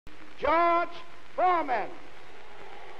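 A man calls out loudly through a loudspeaker in a large hall.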